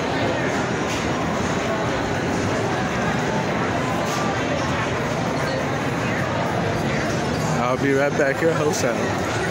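Slot machines chime and jingle.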